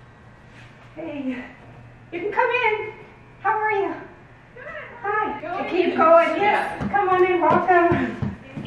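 Women talk and greet each other excitedly nearby.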